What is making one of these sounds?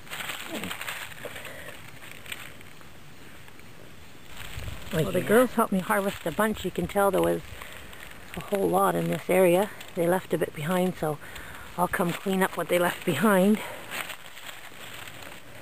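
Dry leaves rustle as a hand brushes through them.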